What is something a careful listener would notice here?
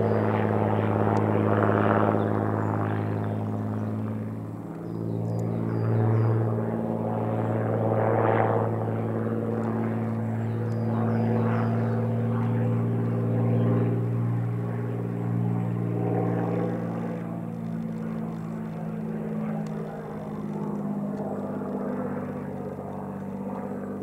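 A propeller plane's engine drones overhead, rising and falling in pitch as it turns.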